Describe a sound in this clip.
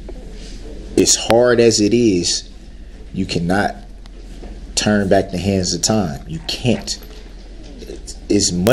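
A man speaks close to a microphone in an agitated, emphatic way.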